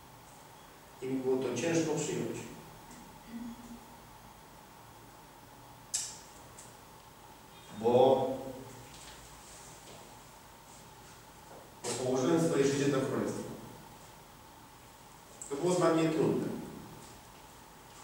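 A man speaks slowly in short phrases with long pauses.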